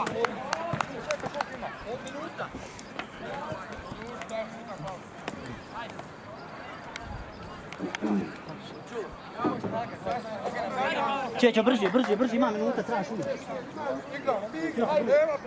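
A crowd of men and women chatters and shouts outdoors at a distance.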